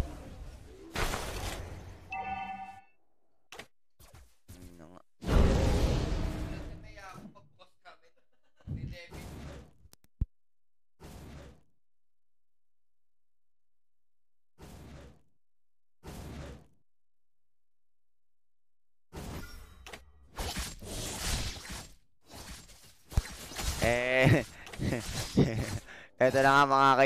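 Sword strikes and magic blasts from a battle game clash in short bursts.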